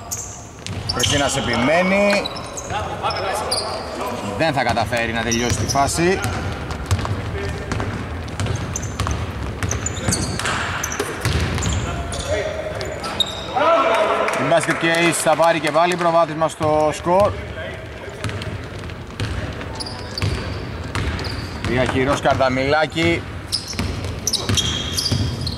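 Sneakers squeak on a hardwood court in a large echoing arena.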